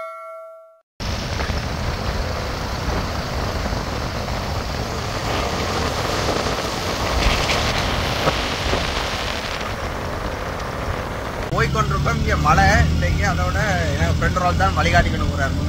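Wind rushes steadily past a moving vehicle on a road.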